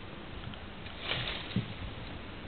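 A dog barks once outdoors.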